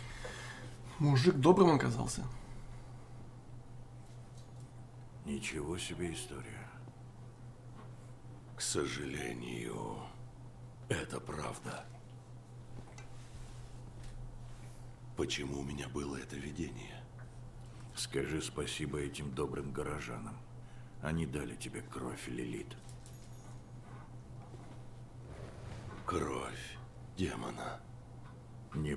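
A young man talks into a microphone in short bursts, with pauses.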